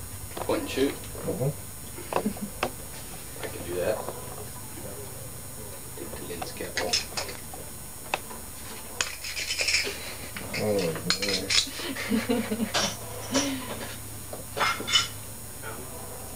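A man breathes in and out through a scuba regulator, with hissing, rasping breaths.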